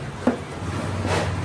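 Sneakers are set down on a wooden seat with a soft thud.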